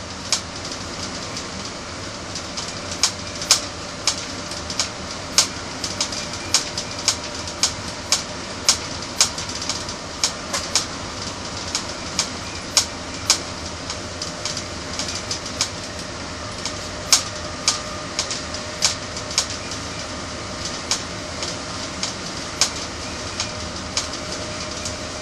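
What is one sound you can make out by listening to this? Train wheels click sharply over rail joints at an uneven pace.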